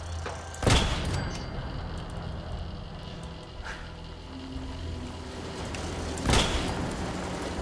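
A rifle fires a loud shot that echoes briefly.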